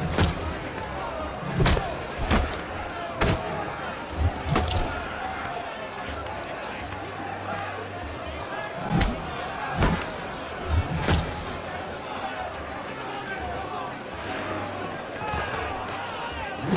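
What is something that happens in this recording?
A crowd of men cheers and shouts throughout.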